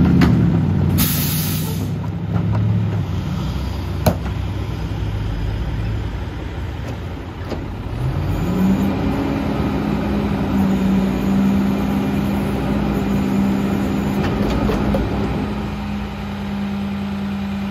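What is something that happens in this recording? A garbage truck's diesel engine idles with a low rumble.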